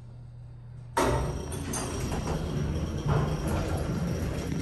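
Elevator doors rattle and slide open.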